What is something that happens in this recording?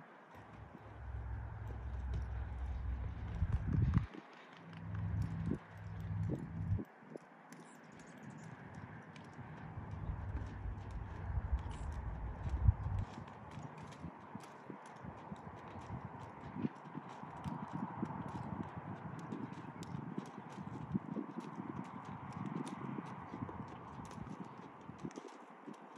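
Hooves thud softly on sand as a horse lopes.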